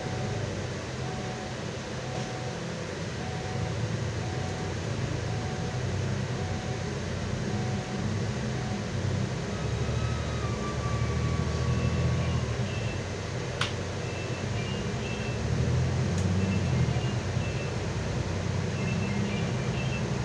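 A bus engine rumbles steadily while driving.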